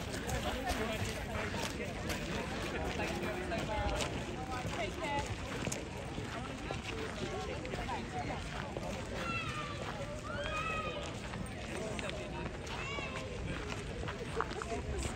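A crowd of men, women and children chatters nearby outdoors.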